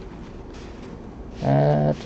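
A cloth rubs against a metal lock.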